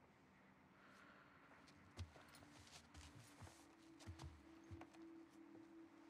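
Clothing rustles and shuffles as two women shift where they sit.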